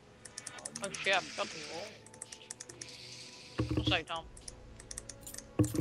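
Menu clicks from a video game tick quickly.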